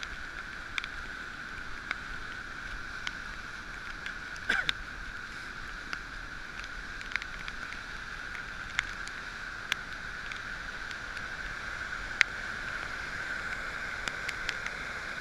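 Raindrops tap sharply against the microphone.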